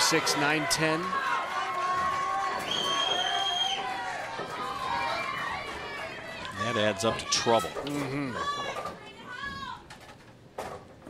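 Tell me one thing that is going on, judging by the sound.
A crowd cheers and shouts loudly nearby.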